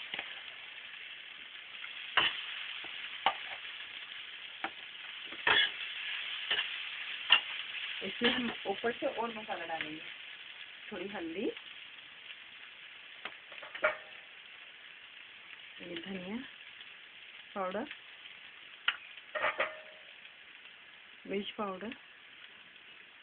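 Food sizzles gently in a hot pan.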